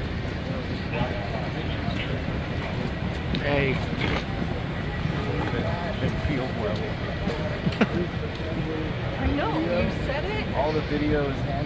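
Men talk nearby with animation in a large echoing hall.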